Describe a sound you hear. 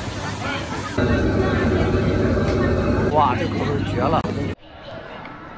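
Hot oil sizzles and bubbles as food fries.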